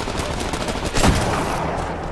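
A sniper rifle fires a loud shot.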